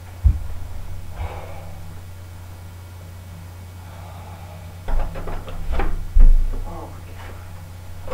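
A second young man talks and exclaims nearby.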